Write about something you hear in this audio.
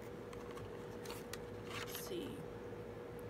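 A small plastic tube clicks and rustles in hands.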